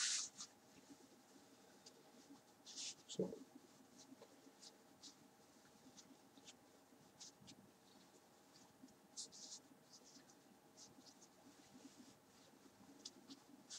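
Fabric rustles softly as a tie is knotted close by.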